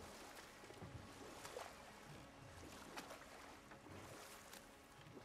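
An oar splashes through water in steady strokes.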